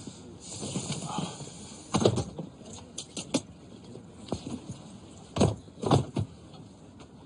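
A bag bumps and thuds as it is pushed into an overhead rack.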